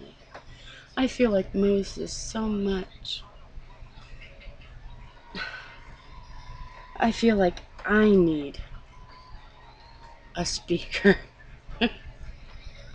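A middle-aged woman speaks animatedly close to a microphone, in short bursts.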